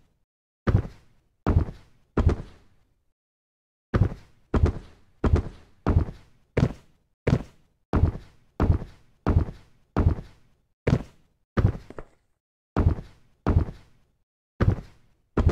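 Short, thudding game jump sounds repeat quickly and steadily, with one brief pause.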